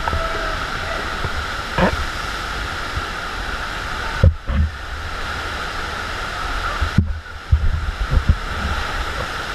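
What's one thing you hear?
A body splashes and thumps into churning water.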